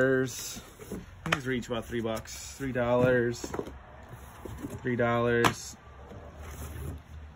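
Books slide and thump against each other in a cardboard box.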